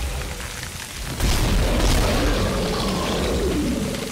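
A monster shrieks and screeches.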